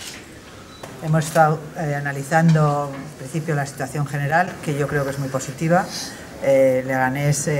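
A middle-aged woman speaks calmly and clearly into close microphones.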